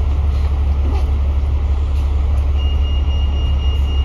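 A bus indicator ticks.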